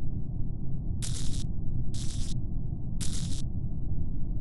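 Short electric buzzes sound as wires snap into place.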